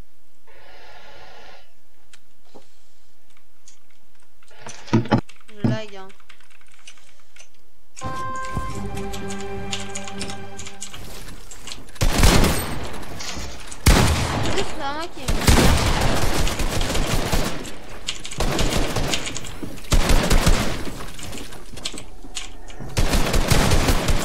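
Keys on a mechanical keyboard clack rapidly.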